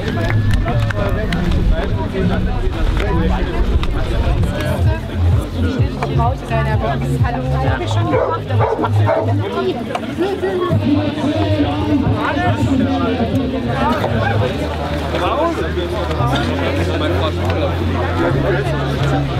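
A crowd of men and women chatters outdoors close by.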